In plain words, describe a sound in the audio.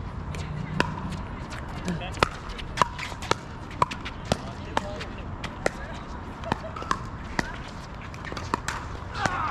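Paddles strike a plastic ball with sharp hollow pops in a quick rally.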